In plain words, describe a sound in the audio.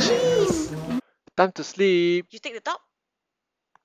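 A woman speaks nearby in a casual, cheerful tone.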